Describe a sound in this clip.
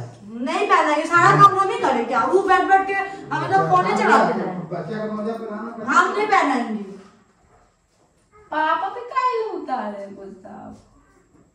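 A woman talks loudly with animation nearby.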